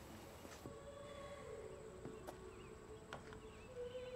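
Footsteps creak softly on a wooden floor.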